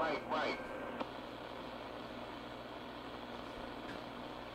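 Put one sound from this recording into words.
Radio static hisses softly.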